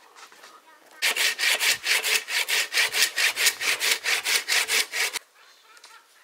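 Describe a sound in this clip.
A man chops at wood with rapid, steady strokes.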